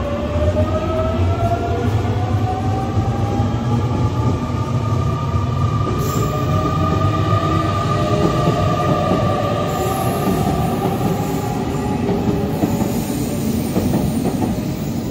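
A train's motor whines with a slowly shifting pitch.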